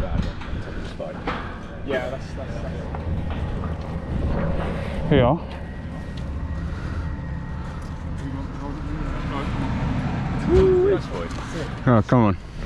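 Shoes scrape and knock on a metal fence.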